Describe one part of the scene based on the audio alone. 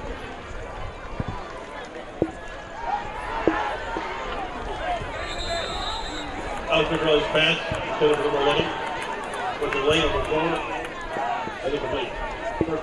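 A crowd cheers in a large open-air stadium.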